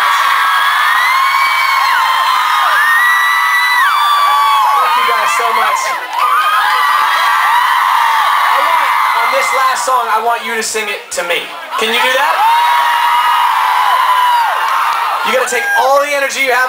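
A crowd of young fans screams and cheers loudly close by.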